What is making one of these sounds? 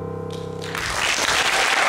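A piano plays a final chord that rings out briefly.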